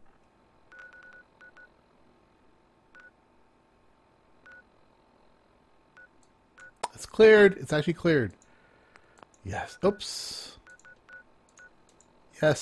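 Soft menu beeps sound now and then.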